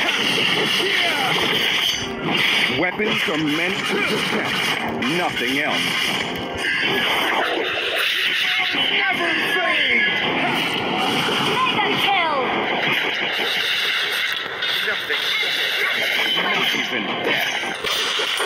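Game heroes clash with sword swipes and magic blasts.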